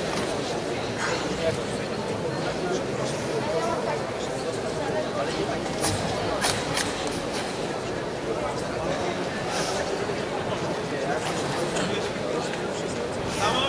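Karate uniforms snap sharply with quick strikes.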